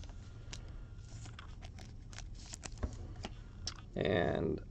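A plastic wrapper crinkles and rustles in someone's hands.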